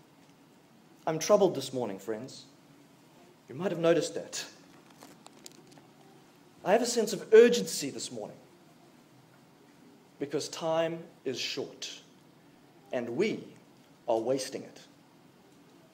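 A man speaks slowly and deliberately into a microphone, with long pauses, in an echoing hall.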